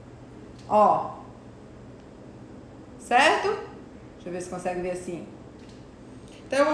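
A woman speaks close by, calmly and in short phrases.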